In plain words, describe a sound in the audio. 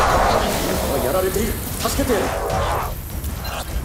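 Shattering crystal shards burst and tinkle.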